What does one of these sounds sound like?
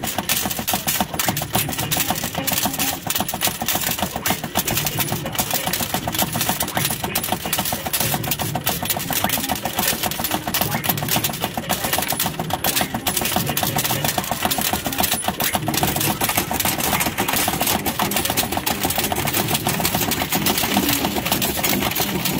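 A slot machine clatters rapidly and steadily as it pays out coins.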